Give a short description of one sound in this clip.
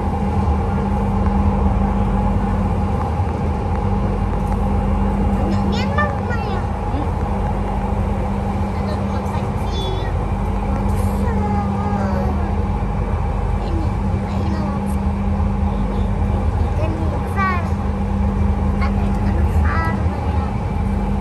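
A train hums and rumbles steadily along the track.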